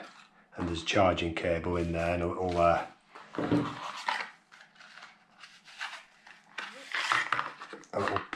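Cardboard and plastic packaging rustles and clicks as it is handled close by.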